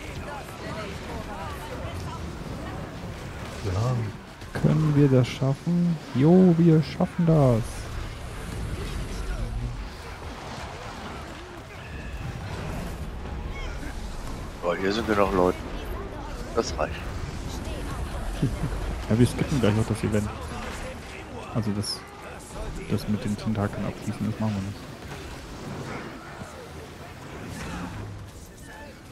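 Magic spells crackle and burst in a fantasy battle.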